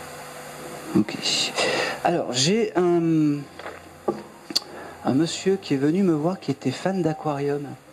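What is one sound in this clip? A man speaks with animation into a microphone.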